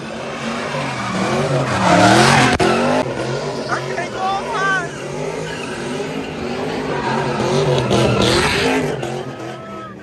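Car tyres screech on the pavement.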